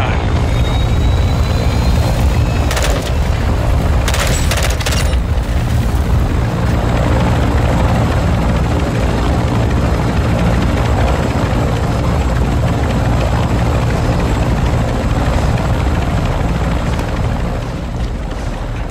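Wind rushes past an open aircraft door.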